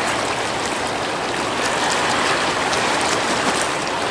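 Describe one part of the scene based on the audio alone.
A goose beats its wings on the water.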